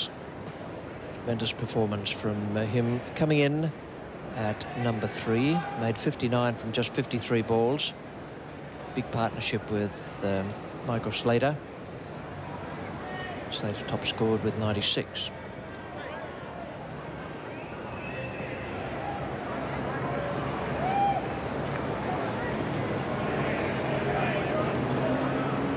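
A crowd murmurs softly in a wide open ground.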